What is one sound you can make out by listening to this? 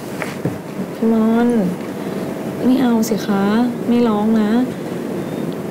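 Another young woman answers up close in a quiet, troubled voice.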